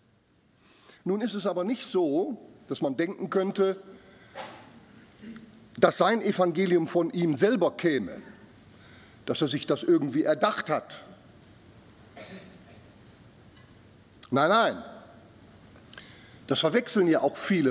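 An elderly man speaks calmly through a microphone in a large room, with pauses between phrases.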